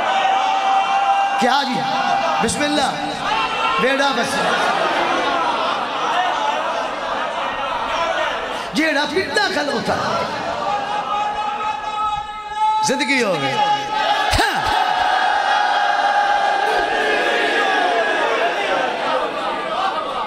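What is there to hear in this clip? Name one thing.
A man recites loudly and with emotion into a microphone, echoing through loudspeakers.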